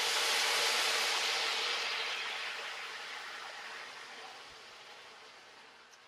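A wooden spatula scrapes food from a wok into a pan.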